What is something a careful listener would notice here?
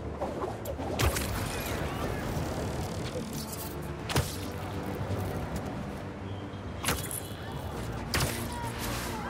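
Web lines snap with sharp whooshes.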